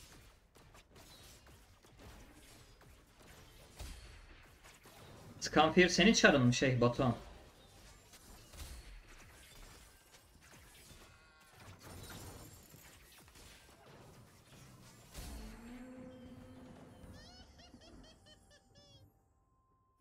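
Game battle effects clash and zap.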